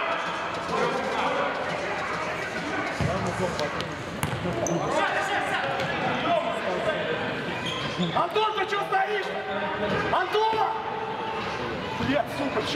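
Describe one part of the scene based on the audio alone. Sports shoes squeak on a hard floor.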